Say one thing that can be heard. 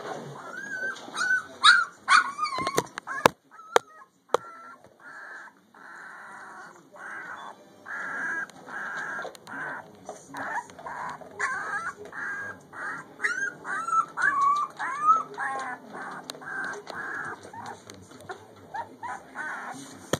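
Puppies whimper and squeal in high, wavering cries.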